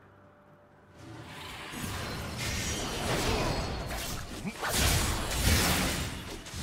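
Fantasy battle sound effects crackle, whoosh and clash in quick bursts.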